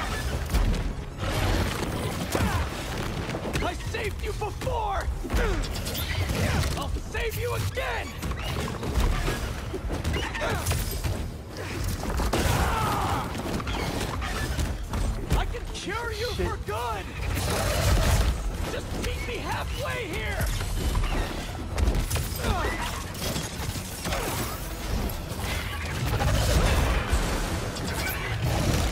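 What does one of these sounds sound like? A giant lizard roars and snarls.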